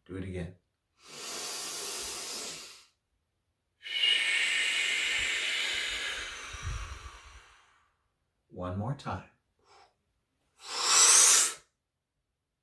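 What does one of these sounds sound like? A man blows out long, slow breaths through pursed lips.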